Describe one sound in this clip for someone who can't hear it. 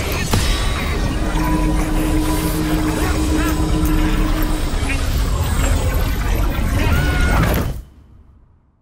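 A staff swings and whooshes through the air.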